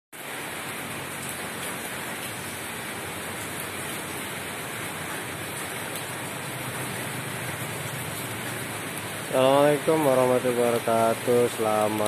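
Steady rain patters onto floodwater outdoors.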